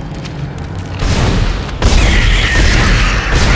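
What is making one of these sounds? A weapon fires loud, crackling energy blasts.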